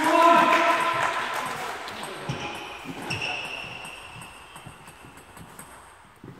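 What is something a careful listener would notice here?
A table tennis ball clicks against a bat and table in a large echoing hall.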